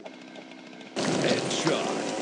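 A cartoonish hit lands with a burst of sound.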